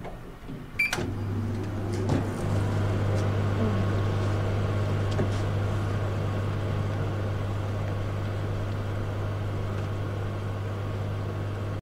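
A microwave hums steadily as it runs.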